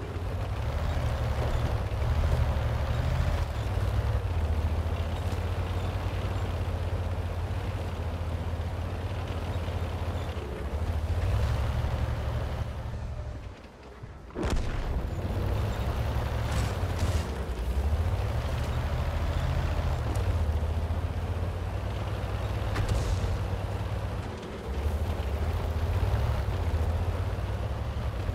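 A tank engine rumbles low and steady, rising and falling as it drives.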